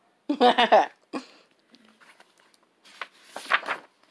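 A page of a book turns over.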